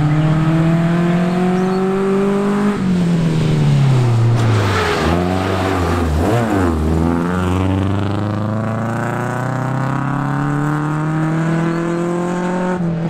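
A rally car engine roars loudly, revving up and down as the car speeds past close by.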